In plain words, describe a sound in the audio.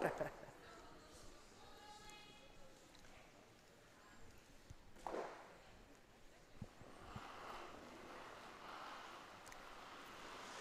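A crowd murmurs softly in a large echoing arena.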